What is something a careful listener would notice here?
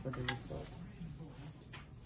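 Hands squish and rub wet hair.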